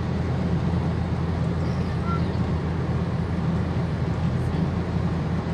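Wind rushes steadily against the car.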